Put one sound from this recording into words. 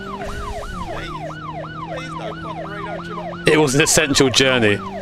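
A police siren wails in a fast, repeating rise and fall.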